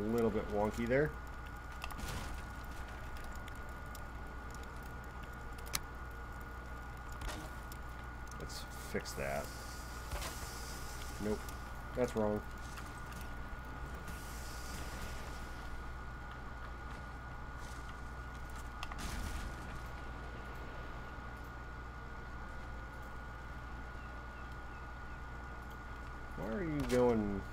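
A fire crackles softly nearby.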